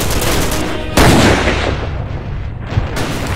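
A sniper rifle fires a single loud shot that echoes and fades.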